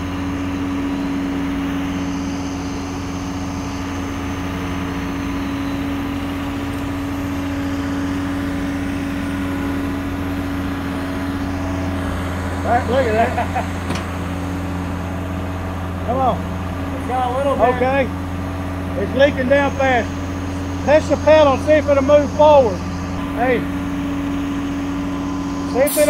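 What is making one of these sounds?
A heavy machine's diesel engine idles with a steady low hum.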